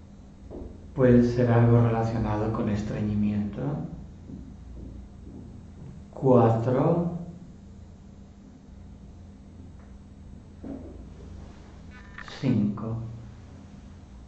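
An elderly man speaks calmly nearby in short bursts.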